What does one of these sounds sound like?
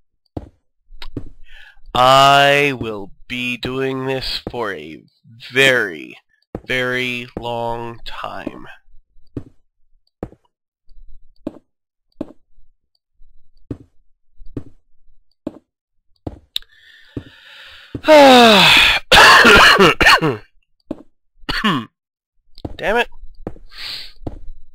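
Stone blocks thud softly as they are placed one after another.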